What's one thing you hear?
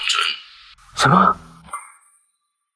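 A man exclaims sharply in shock.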